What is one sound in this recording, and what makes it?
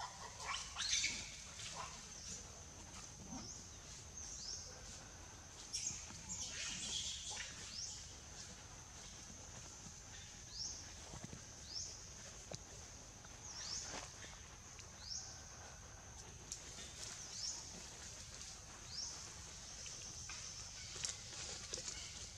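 A baby monkey squeaks in short, high, rising cries.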